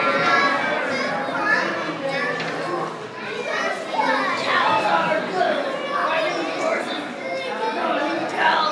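A young child talks and squeals with excitement close by.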